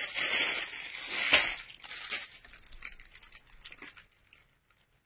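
Clothes and plastic wrapping rustle close by.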